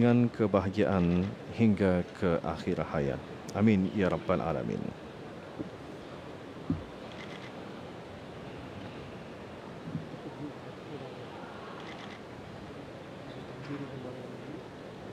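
A large crowd murmurs softly in a big hall.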